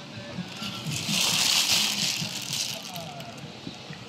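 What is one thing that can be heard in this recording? Plastic wrapping crinkles and rustles close by.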